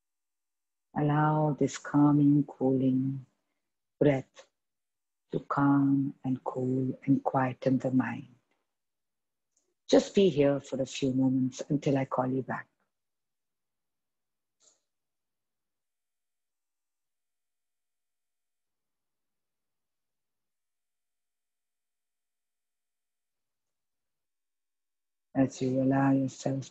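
A young woman speaks calmly and slowly, close by, with pauses between phrases.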